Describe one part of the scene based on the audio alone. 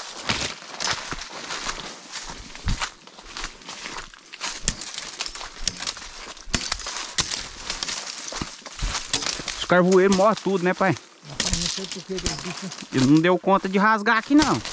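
Footsteps crunch through dry leaves and twigs outdoors.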